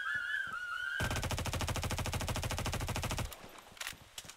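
Guns fire in a rapid burst.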